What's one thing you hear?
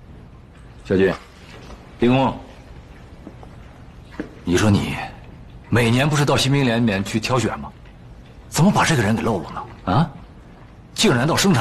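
A middle-aged man speaks calmly and with authority, close by.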